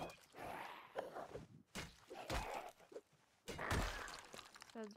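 A blunt weapon thuds against a body several times.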